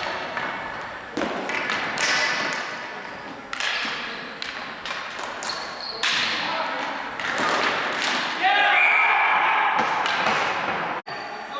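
A ball bangs against the boards in a large echoing gym.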